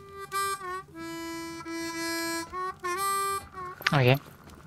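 A harmonica plays a short tune.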